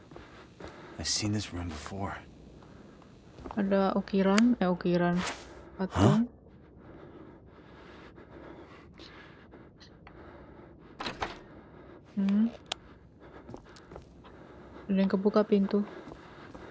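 A young woman speaks close to a microphone, reacting with animation.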